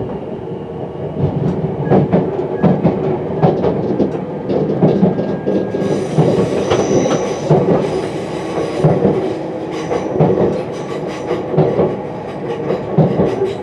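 Train wheels clatter rhythmically over rail joints.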